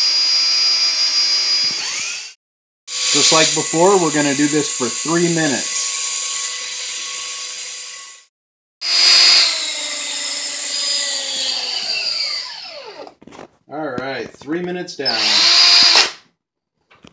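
A power drill whirs loudly and winds down.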